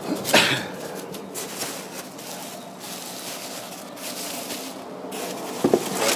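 Foam packing pieces squeak and scrape.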